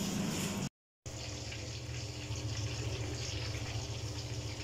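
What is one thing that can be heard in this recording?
A flatbread sizzles softly in a hot pan.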